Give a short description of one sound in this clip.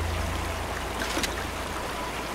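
A rifle magazine clicks as ammunition is picked up.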